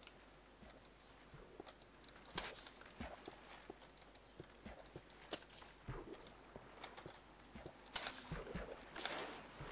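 Water splashes and sloshes as something wades through it.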